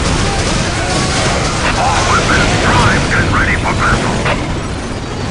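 Explosions and gunfire crackle in a skirmish.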